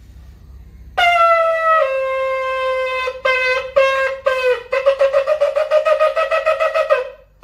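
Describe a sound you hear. A ram's horn blows a long note, then short broken blasts and a rapid trembling series.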